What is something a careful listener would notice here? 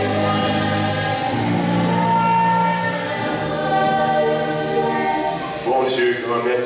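Young voices sing together in an echoing room.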